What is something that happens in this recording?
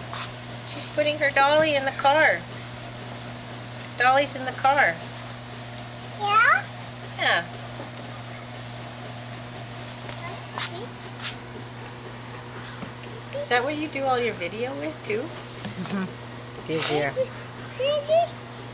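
A toddler babbles and squeals in a high voice close by.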